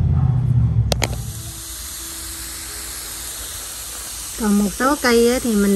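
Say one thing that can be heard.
A spray nozzle hisses steadily as it sprays water.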